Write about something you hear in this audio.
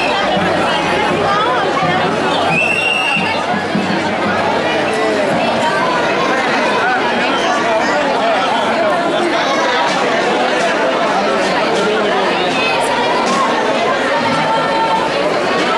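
A large crowd of men and women talks and murmurs at once outdoors.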